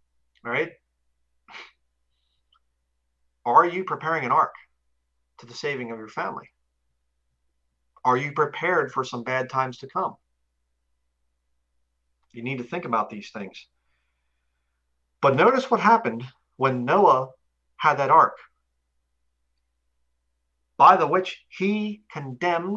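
A man speaks calmly and with emphasis into a close microphone, in short bursts with pauses.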